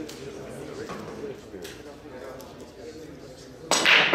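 Pool balls click against each other on a table.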